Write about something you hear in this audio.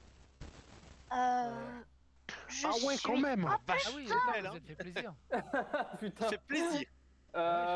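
Several young men talk excitedly over an online call.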